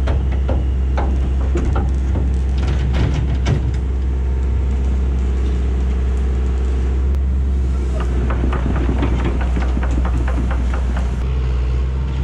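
Heavy metal clanks and bangs as an excavator bucket grabs a steel dump box.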